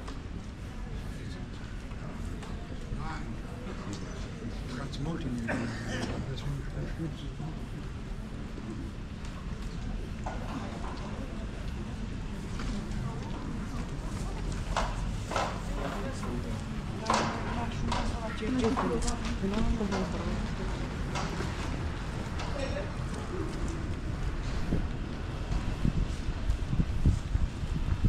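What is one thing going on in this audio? Footsteps tap on wet paving stones.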